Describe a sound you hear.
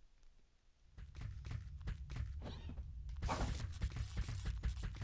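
Heavy footsteps thud quickly on the ground.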